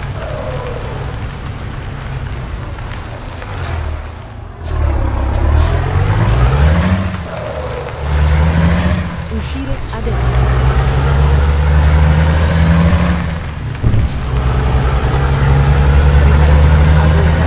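A truck engine rumbles and revs up and down as it drives.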